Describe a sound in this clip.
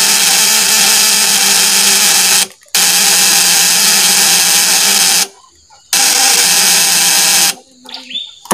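An electric coil buzzes loudly and steadily, cutting out briefly.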